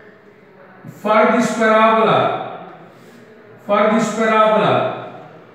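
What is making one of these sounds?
A middle-aged man explains aloud in a loud, clear voice, with some room echo.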